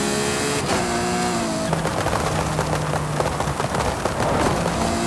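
Tyres hiss on the road.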